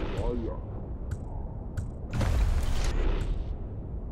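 Short soft clicks sound as a weapon menu is scrolled through.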